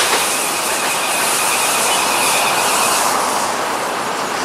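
Insects buzz and trill in the trees nearby.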